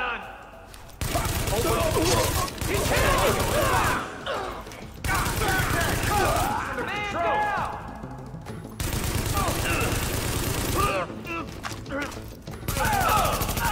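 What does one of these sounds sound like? Rapid gunfire rattles in bursts inside an echoing space.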